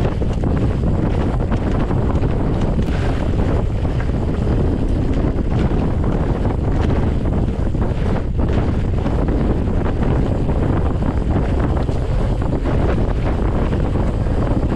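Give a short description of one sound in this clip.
Knobby bike tyres roll and crunch over a rough dirt track.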